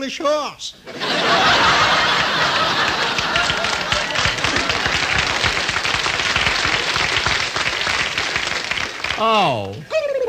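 An old radio hisses loudly with static.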